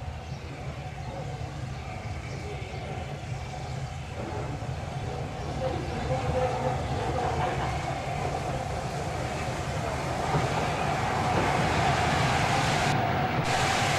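A steam locomotive approaches, chuffing and rumbling louder as it nears.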